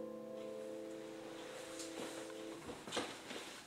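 A piano chord rings out steadily and then stops.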